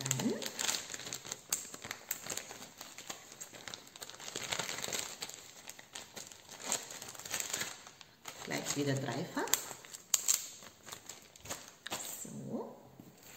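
A plastic bag crinkles in a woman's hands.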